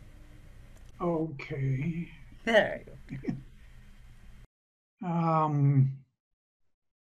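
A woman speaks briefly and warmly over an online call.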